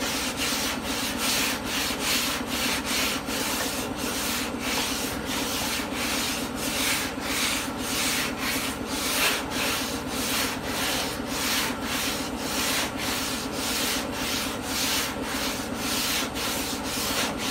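Sandpaper rasps in quick back-and-forth strokes over a car panel.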